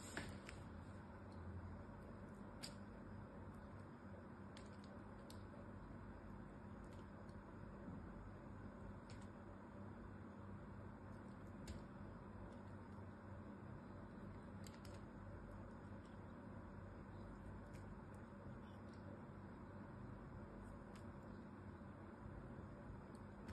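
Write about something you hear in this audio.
A knife scrapes and slices through soft soap with crisp clicks.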